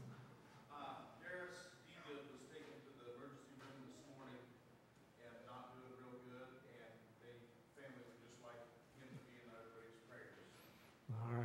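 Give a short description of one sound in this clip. A man talks quietly and calmly, farther from the microphone.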